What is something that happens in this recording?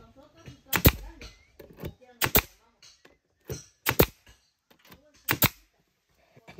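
A nail gun fires with sharp, loud bangs, several times in a row.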